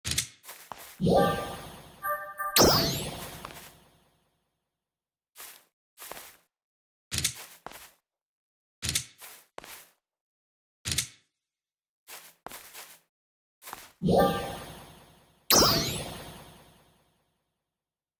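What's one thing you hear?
A menu opens with a bright chiming sweep.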